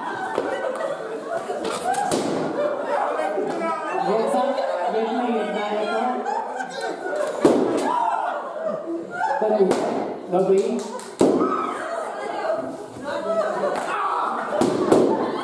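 A crowd of adults chatters and laughs loudly in an echoing hall.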